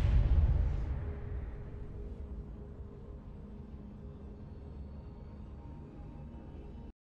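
A loud in-game blast booms, then rumbles and fades.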